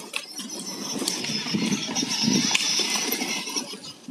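A child's electric ride-on motorcycle whines as it drives.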